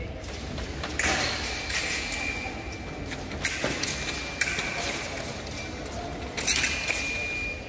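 Thin metal blades click against each other.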